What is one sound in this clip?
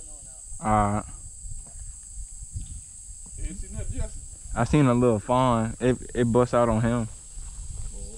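Footsteps crunch on a gravel road.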